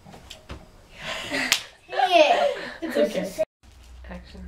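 A boy laughs.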